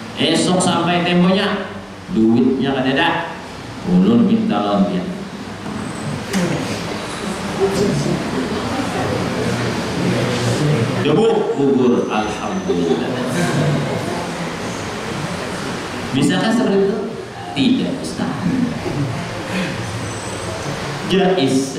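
A man preaches with animation into a microphone, heard through a loudspeaker in an echoing room.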